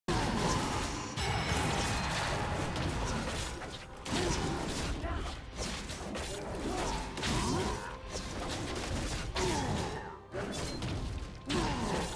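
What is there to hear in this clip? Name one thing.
Weapons clash and spells burst in a fast, noisy fight.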